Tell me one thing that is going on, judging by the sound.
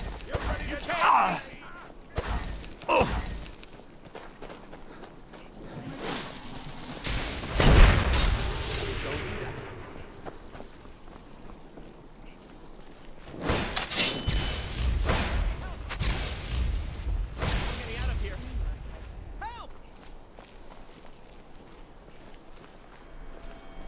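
Magic spells crackle and whoosh.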